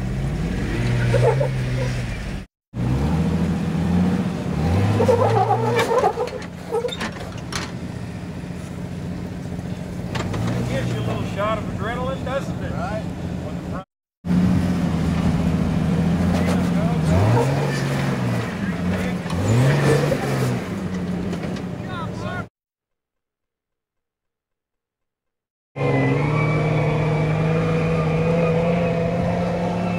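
An off-road engine revs and labours, rising and falling in pitch.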